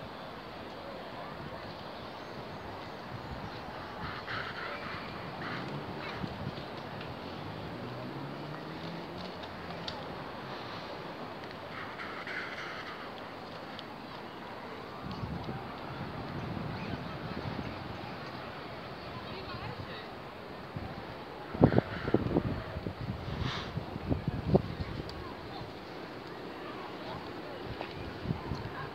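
Wind blows across the open beach.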